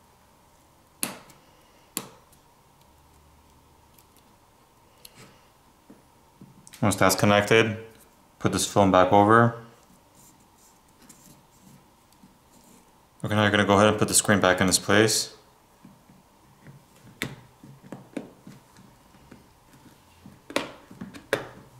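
Small plastic parts click and snap into place.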